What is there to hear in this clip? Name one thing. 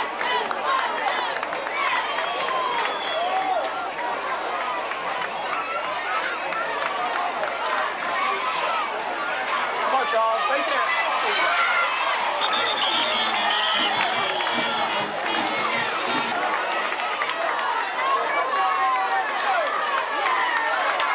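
A large crowd of spectators cheers and shouts outdoors.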